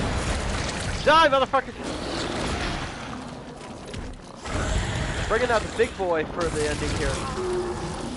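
A monster roars and shrieks.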